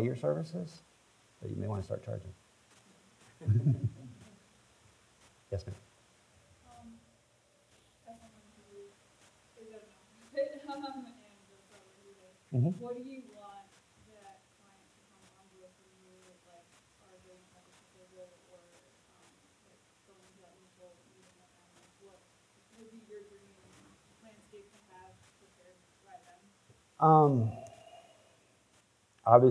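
A man speaks calmly into a microphone over a loudspeaker in a large room.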